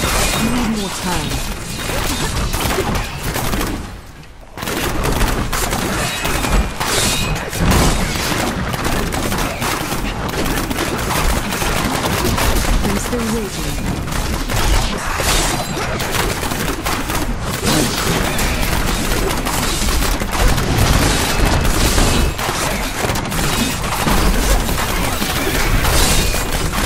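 Electric spells crackle and zap rapidly.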